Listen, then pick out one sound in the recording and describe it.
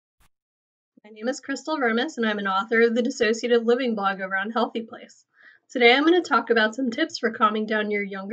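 A young woman speaks calmly and warmly, close to a microphone.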